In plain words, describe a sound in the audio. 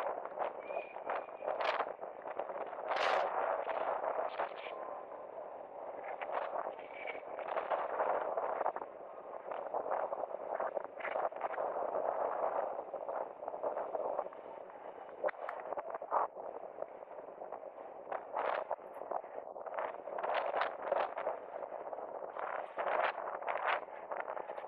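Inline skate wheels roll and scrape on asphalt in rhythmic strides.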